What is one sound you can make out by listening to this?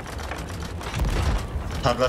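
A cannon fires with a loud boom.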